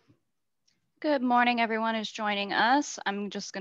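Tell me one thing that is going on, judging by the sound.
A young woman speaks brightly through an online call.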